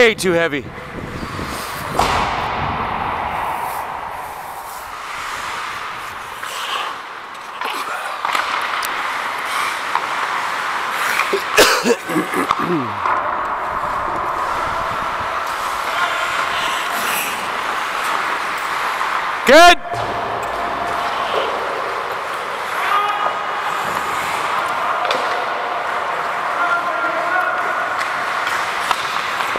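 Skate blades scrape and hiss on the ice.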